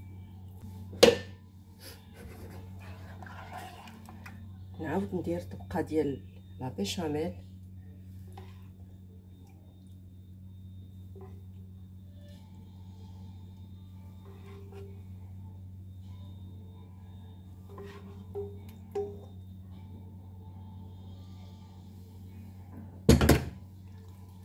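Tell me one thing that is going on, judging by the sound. A metal spoon clinks and scrapes against a dish.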